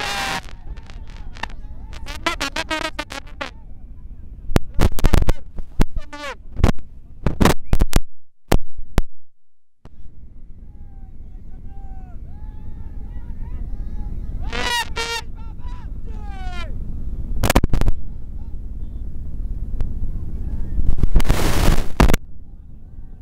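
A crowd of young men cheers and shouts excitedly outdoors.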